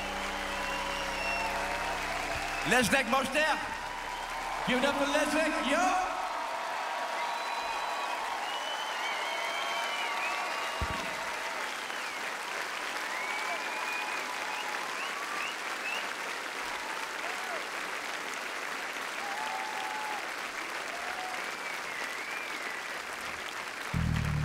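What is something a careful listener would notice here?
A large crowd cheers and whistles outdoors.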